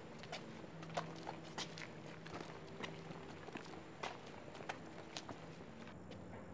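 Footsteps tap on a hard stone walkway.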